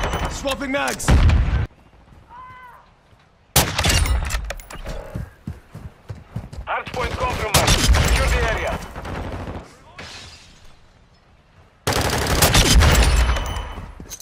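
A rifle bolt clacks as it is worked.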